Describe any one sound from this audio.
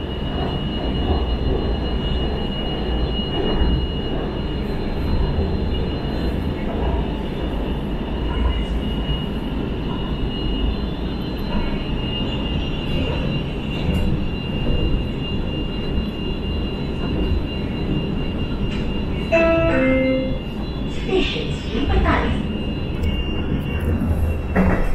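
A train's motor whines with a steady high tone.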